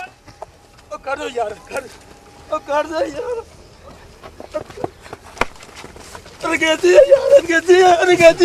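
A man shouts and wails in distress nearby.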